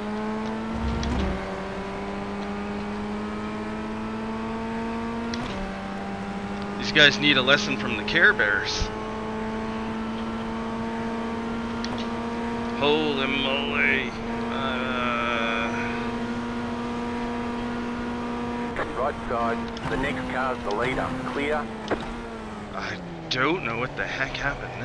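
A racing car engine drones steadily, shifting pitch with gear changes.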